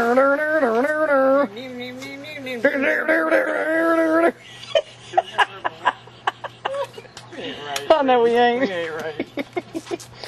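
A woman talks and laughs with animation close by.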